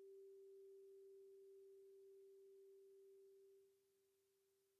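A singing bowl hums faintly and fades away.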